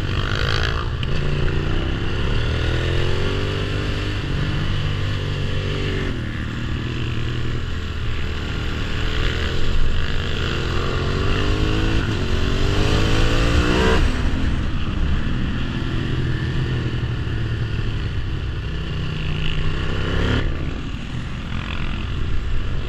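A motorcycle engine revs up and down loudly, close by.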